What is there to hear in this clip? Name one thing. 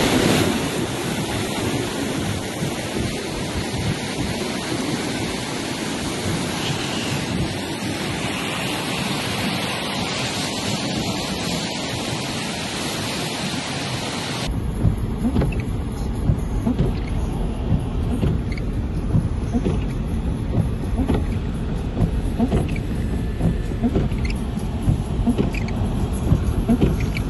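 A muddy mudflow torrent roars and rushes over rocks.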